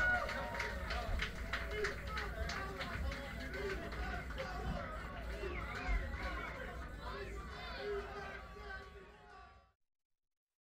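A crowd of people chatters and shouts over the music.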